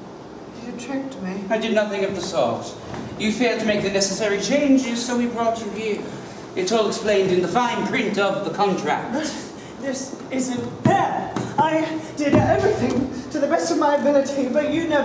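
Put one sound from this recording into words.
A man speaks loudly and theatrically.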